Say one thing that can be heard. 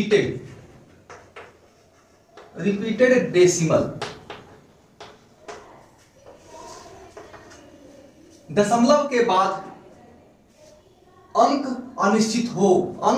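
A man speaks calmly and clearly, close by, as if teaching.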